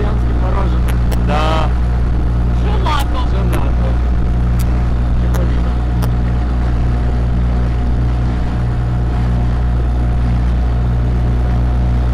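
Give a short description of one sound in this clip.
Water rushes and splashes against a moving boat.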